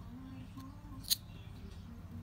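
A nutshell cracks open with a sharp snap.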